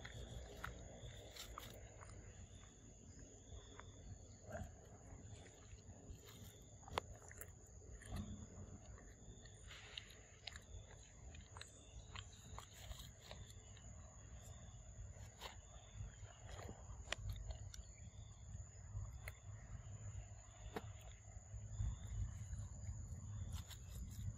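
A macaque chews and handles food close by.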